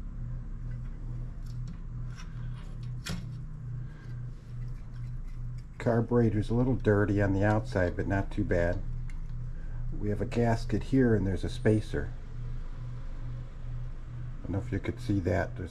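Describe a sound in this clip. Metal engine parts clink and tap as they are handled.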